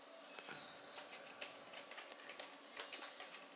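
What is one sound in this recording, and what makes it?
Keys clatter on a computer keyboard in quick, uneven bursts.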